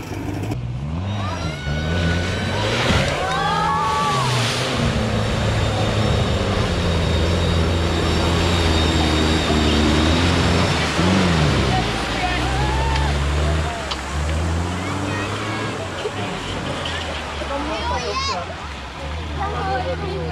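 A crowd of onlookers shouts and cheers outdoors.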